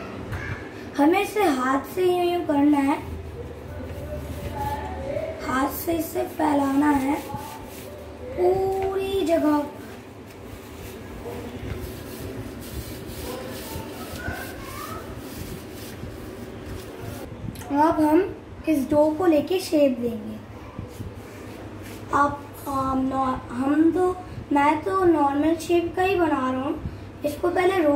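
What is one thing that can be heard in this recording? A young boy talks calmly close by.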